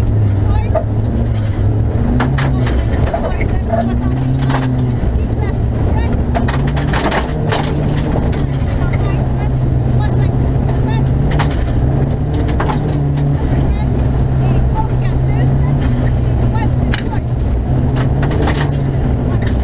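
Gravel and bumps rattle the car's cabin.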